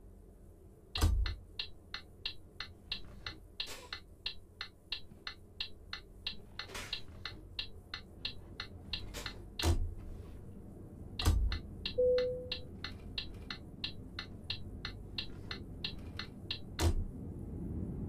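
A turn signal ticks rapidly and evenly.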